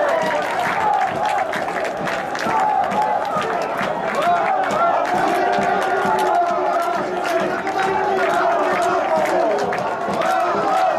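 Spectators clap their hands in rhythm.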